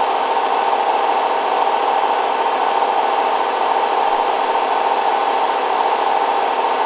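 A washing machine hums and whirs steadily.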